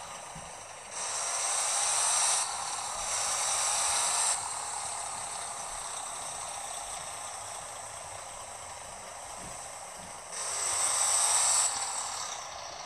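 A truck engine revs up and rises in pitch.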